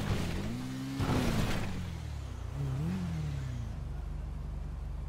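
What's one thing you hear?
A motorcycle crashes with a heavy thud.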